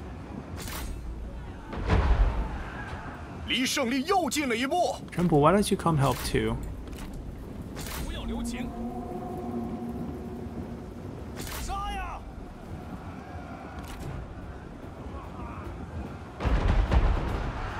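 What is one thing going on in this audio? Weapons clash in a large battle.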